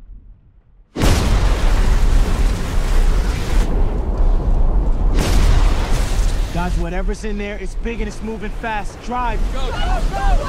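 A strong wind roars and howls.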